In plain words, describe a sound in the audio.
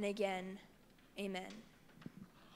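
A young woman sings into a microphone.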